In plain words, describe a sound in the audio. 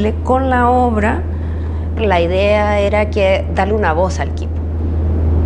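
A young woman speaks calmly, close to a microphone.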